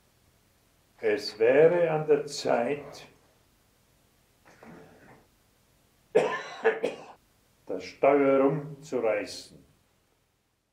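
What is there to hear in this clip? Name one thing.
An elderly man speaks calmly and slowly into a nearby microphone.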